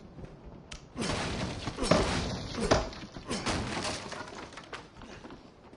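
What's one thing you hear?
A wooden crate smashes and splinters.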